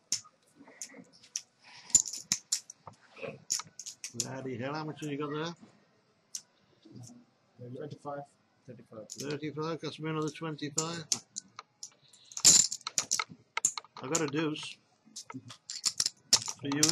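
Poker chips click and clatter on a table.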